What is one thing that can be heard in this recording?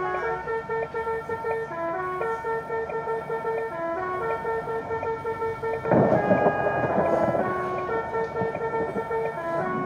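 Music with a steady beat plays.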